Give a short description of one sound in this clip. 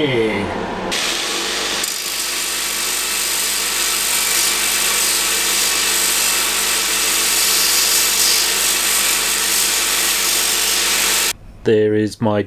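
A belt sander grinds metal with a loud steady rush.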